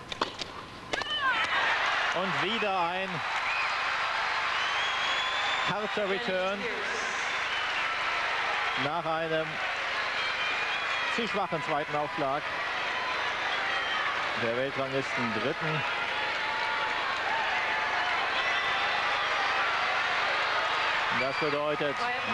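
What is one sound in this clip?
A large crowd cheers and applauds loudly in an echoing hall.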